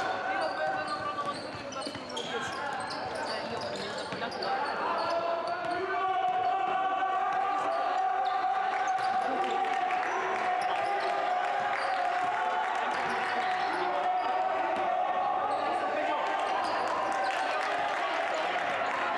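Basketball shoes squeak on a hardwood court in a large echoing hall.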